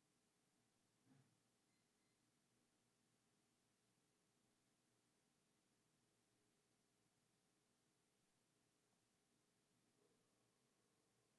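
An elderly man breathes slowly and softly close by.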